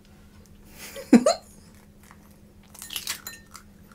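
An eggshell cracks between fingers.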